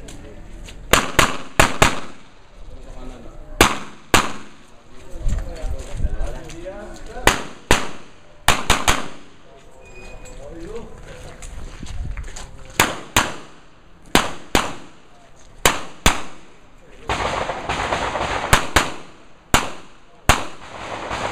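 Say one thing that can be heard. A pistol fires sharp, loud shots in quick bursts outdoors.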